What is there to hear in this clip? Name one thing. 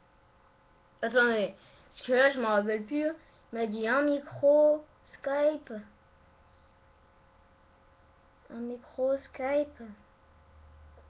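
A boy speaks close to a microphone, in short bursts with pauses.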